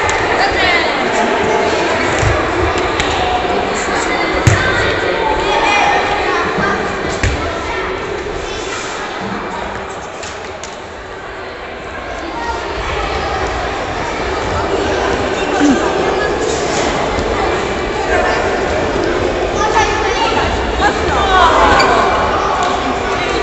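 Children chatter and shout in a large echoing hall.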